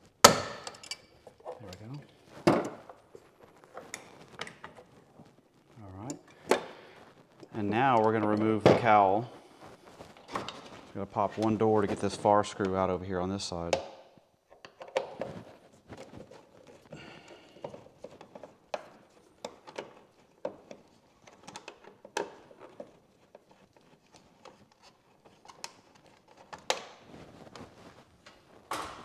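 Hand tools click and tap against metal parts.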